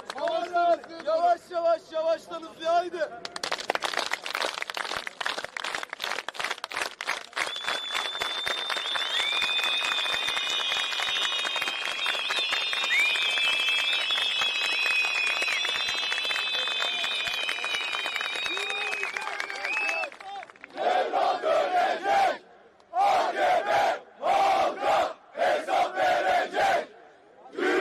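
A large crowd chants together in loud rhythmic bursts outdoors.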